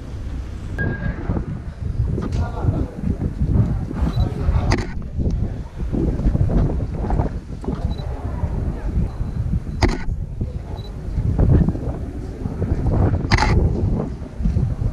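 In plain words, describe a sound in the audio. A crowd of people murmurs and talks outdoors.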